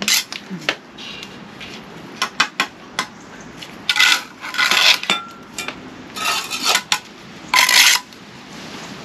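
A trowel scrapes and taps mortar on concrete blocks.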